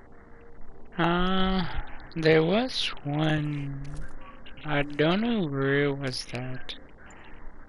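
A man speaks loudly and with animation close to a microphone.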